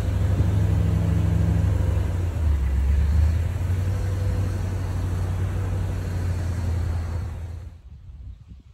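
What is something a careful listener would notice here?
A car engine idles with a steady low rumble, then cuts off.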